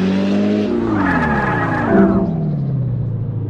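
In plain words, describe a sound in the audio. Tyres screech briefly on tarmac.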